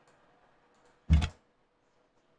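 A short game sound effect plays.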